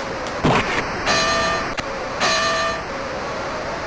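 A boxing bell rings twice.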